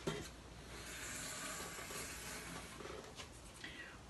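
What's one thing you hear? Hands rub and scrape across a board.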